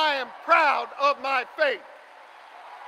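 A man shouts forcefully into a microphone, heard through loudspeakers.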